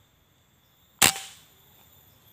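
An air rifle fires once with a sharp crack.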